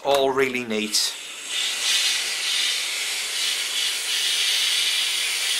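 A steam iron hisses steadily.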